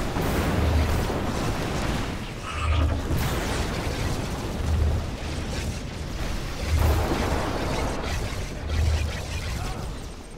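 Deep booms pulse at a steady beat.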